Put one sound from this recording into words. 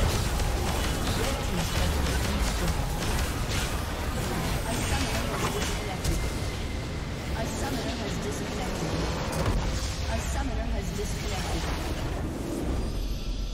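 Game spell effects crackle and burst in a busy battle.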